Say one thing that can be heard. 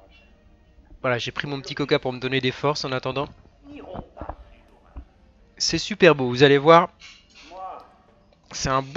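A man speaks firmly through a television loudspeaker.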